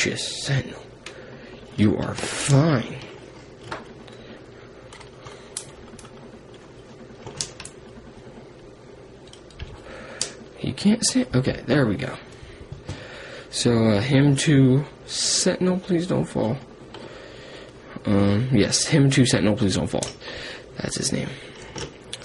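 Plastic toy parts click and rattle as a hand moves them.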